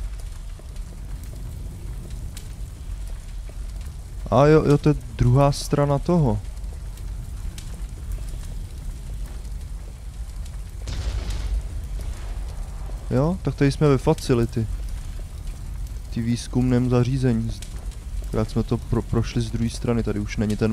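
Flames crackle softly.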